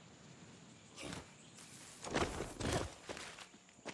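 Footsteps land heavily on rocky ground.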